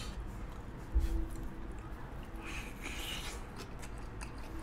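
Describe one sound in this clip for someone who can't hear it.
A young man bites and chews food noisily.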